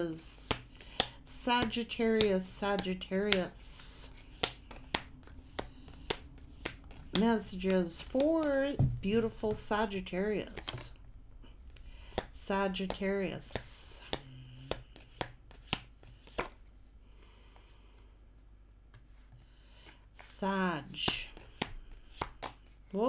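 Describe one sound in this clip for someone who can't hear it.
Cards tap and shuffle in a woman's hands.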